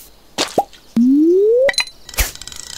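A rising chime plays when a fish is caught.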